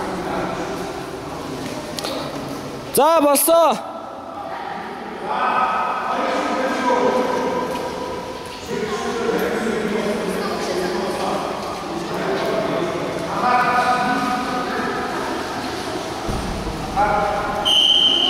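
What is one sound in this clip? A man speaks loudly in an echoing hall.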